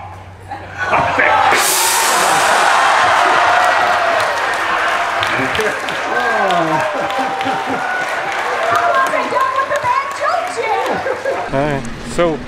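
An audience cheers and applauds loudly.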